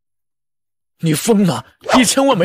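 A young man speaks sharply, close by.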